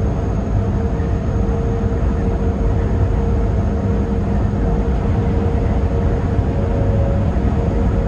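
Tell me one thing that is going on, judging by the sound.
A passing truck rushes by close alongside.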